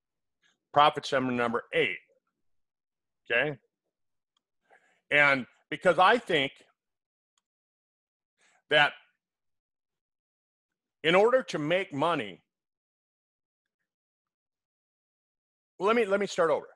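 An older man speaks with animation through a headset microphone, in short bursts with pauses.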